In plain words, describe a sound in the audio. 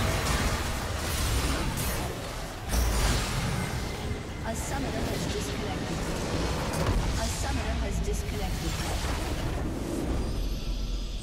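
Game spell effects and explosions crash and blast loudly.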